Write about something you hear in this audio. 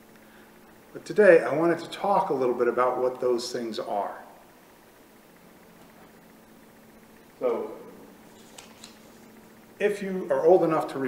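A middle-aged man speaks calmly and closely, with a slight room echo.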